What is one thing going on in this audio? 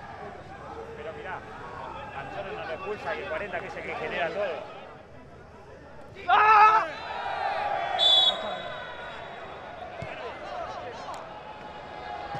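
A large crowd cheers and chants in a stadium.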